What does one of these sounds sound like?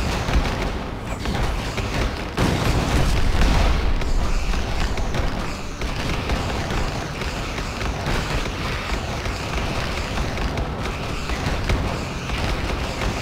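Cannons and towers fire in rapid bursts.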